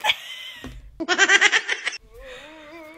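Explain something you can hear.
A small monkey screeches and cries.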